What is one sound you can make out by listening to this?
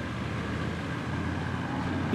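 Small boat motors hum steadily nearby.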